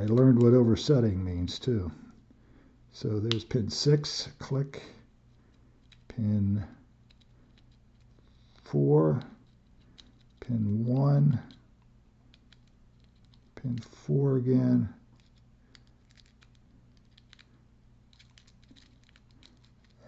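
Small metal parts click and scrape against each other.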